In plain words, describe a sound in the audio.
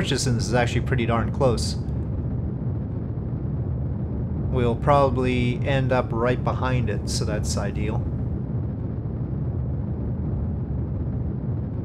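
A rocket engine rumbles steadily.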